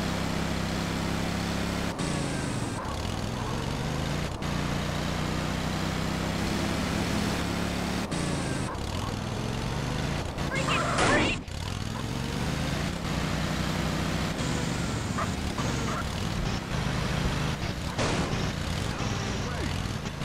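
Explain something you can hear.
A small go-kart engine buzzes steadily and revs.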